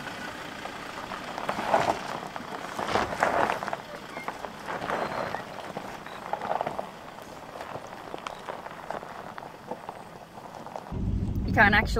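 A truck engine rumbles as the truck crawls slowly over rough ground.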